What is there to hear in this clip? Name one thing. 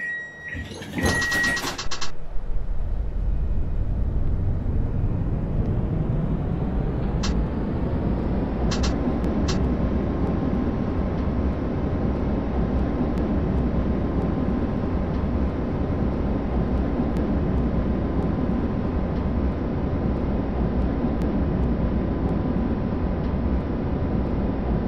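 A tram rolls along rails with a deep steady rumble.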